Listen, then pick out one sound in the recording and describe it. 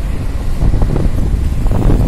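A motorbike engine hums as it rides past.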